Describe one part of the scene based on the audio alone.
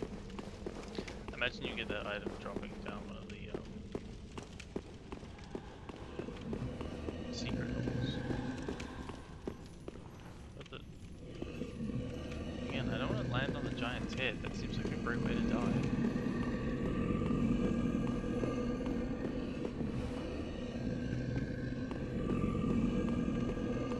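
Armoured footsteps tread on stone.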